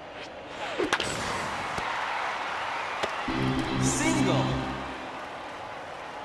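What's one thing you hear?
A stadium crowd in a video game cheers.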